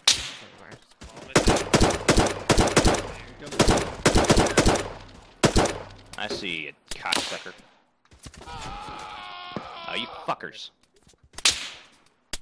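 Rapid rifle shots crack sharply and echo outdoors.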